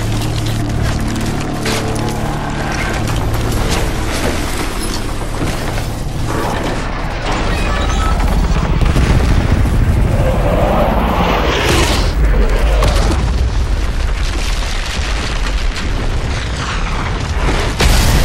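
A helicopter engine roars and rattles throughout.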